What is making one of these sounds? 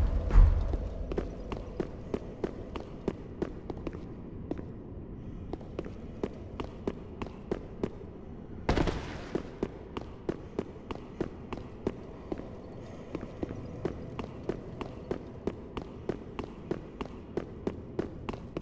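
Armoured footsteps clank steadily on stone.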